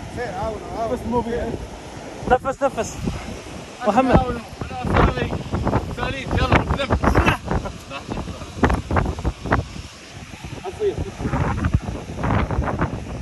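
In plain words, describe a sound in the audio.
Waves crash against rocks below.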